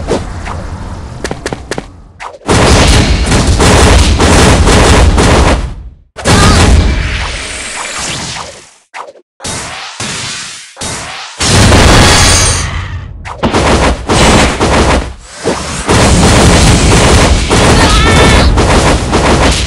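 Game attack effects crash and whoosh in quick bursts.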